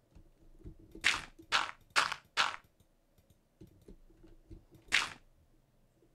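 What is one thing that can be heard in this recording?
Blocks of dirt are placed with short, crunchy thuds.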